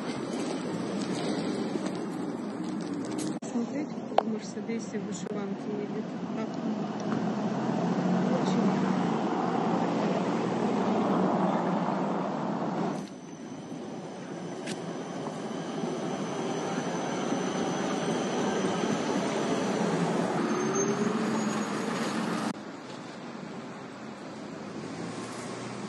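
Traffic hums steadily on a city street.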